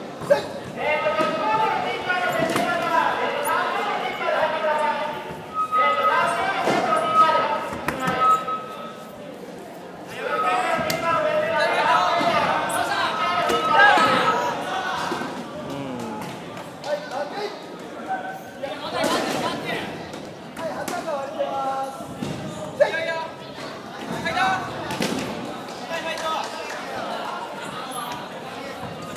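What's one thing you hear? A crowd of young people shouts and cheers in a large echoing hall.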